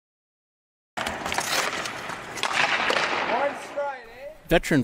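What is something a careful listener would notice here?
Ice skates scrape and carve across ice in a large echoing hall.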